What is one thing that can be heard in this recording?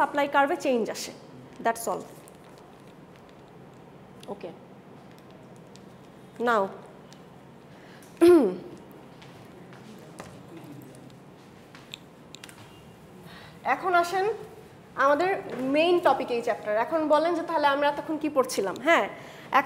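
A young woman speaks calmly, with pauses.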